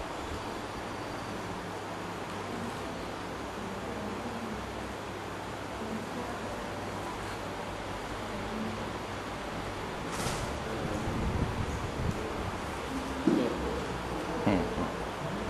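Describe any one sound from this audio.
Bare feet shift and press softly on a floor mat.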